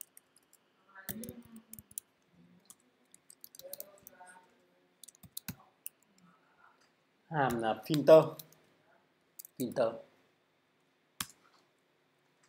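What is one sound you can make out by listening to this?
Keys click on a computer keyboard as someone types.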